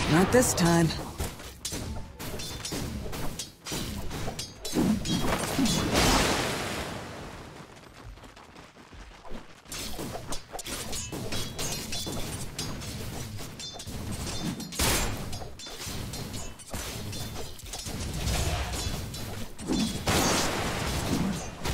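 Magic spells and weapon blows crackle and clash in a busy fight.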